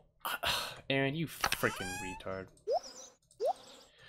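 A game menu pops open with a short chime.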